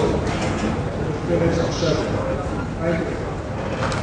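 A man speaks calmly into a microphone, heard over loudspeakers in a large room.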